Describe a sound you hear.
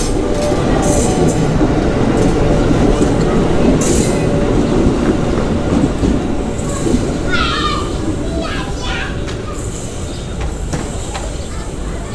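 A train rumbles and clatters past close by, then fades into the distance.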